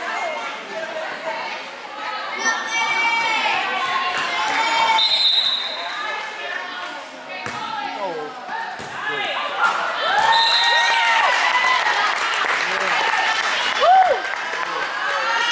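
A crowd of young spectators cheers and shouts in a large echoing gym.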